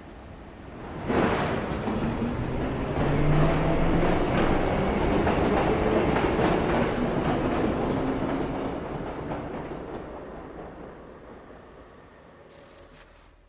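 A subway train rumbles and roars through a tunnel, then fades away.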